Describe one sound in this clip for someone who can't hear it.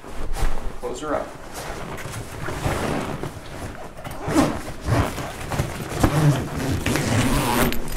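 Fabric rustles and scrapes as hands press and pull at a padded bag.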